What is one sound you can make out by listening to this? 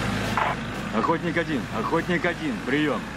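A man speaks into a walkie-talkie in a firm, clipped voice.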